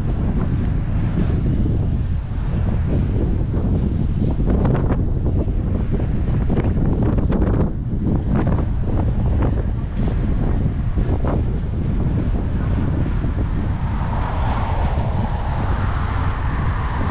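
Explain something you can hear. Wind buffets the microphone outdoors throughout.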